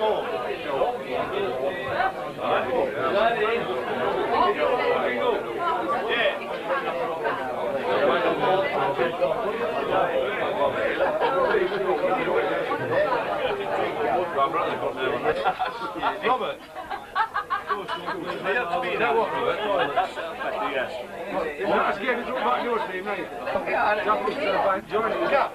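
A crowd of people chatter loudly all around.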